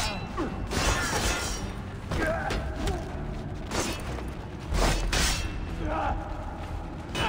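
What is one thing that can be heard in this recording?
Swords clash and slash repeatedly.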